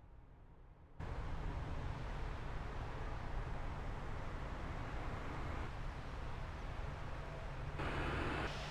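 Jet engines hum and roar steadily.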